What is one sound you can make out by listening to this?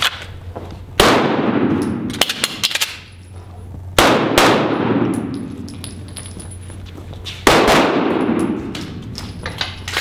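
Pistol shots ring out loudly, echoing through a large hall.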